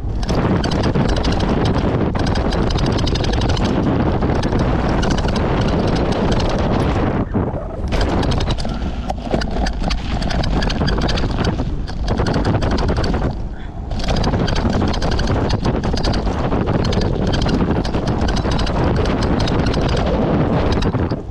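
Bike tyres rumble and crunch over a dirt trail.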